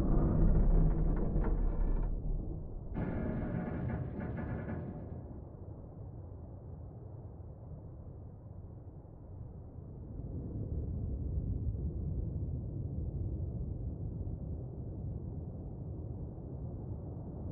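A submarine's engine hums with a deep underwater rumble.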